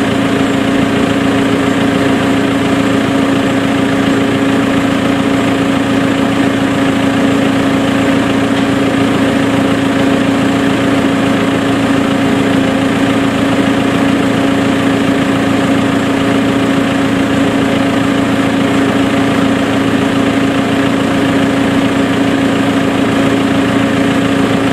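A tractor engine idles with a steady drone close by.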